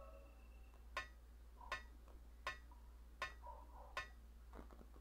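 Hands and feet clank on metal ladder rungs at a steady pace.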